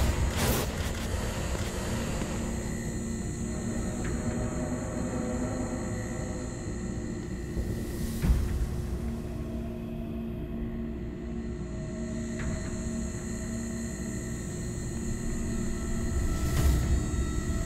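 Slow, soft footsteps scuff on a hard floor.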